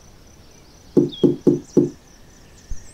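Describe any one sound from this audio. A finger taps loudly on a microphone close up.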